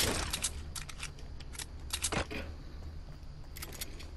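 Video game building pieces clack sharply into place.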